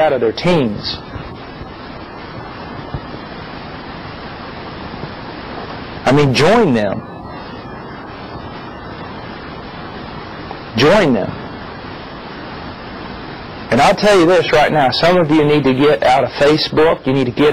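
A middle-aged man speaks calmly and thoughtfully into a close microphone, with long pauses.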